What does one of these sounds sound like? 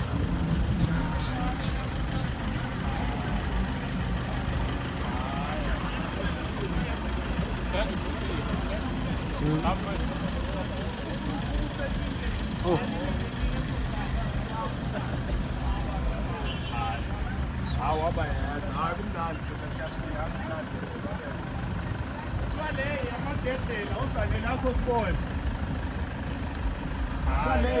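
Minibus engines rumble low as the vehicles roll slowly past, close by.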